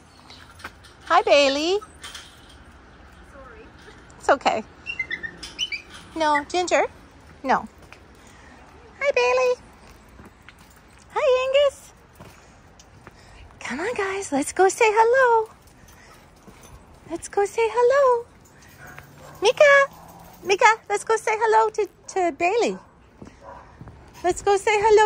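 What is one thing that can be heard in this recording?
Dogs bark and yelp excitedly close by.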